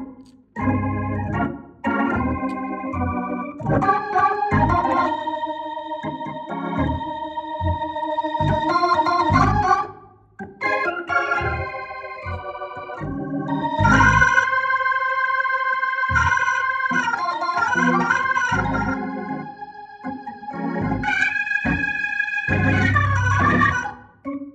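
An electric organ plays chords and a melody.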